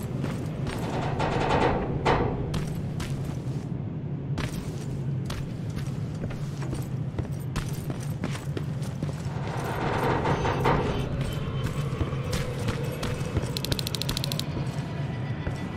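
Footsteps crunch on rubble and gravel.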